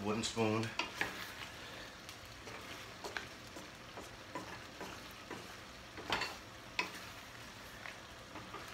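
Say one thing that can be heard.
A wooden spoon scrapes and knocks against a frying pan as pasta is stirred.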